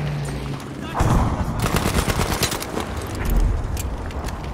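A submachine gun fires rapid bursts of shots at close range.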